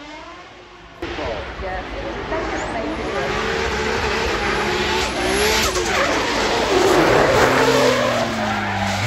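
A drift car's engine revs hard as it approaches.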